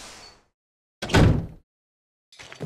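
A door shuts with a heavy thud.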